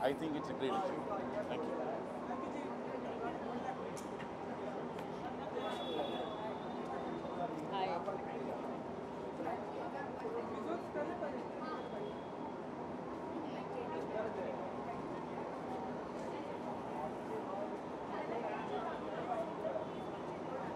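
A crowd of people chatters steadily nearby.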